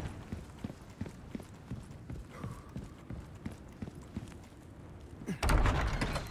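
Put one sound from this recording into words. Footsteps tap steadily on a stone floor.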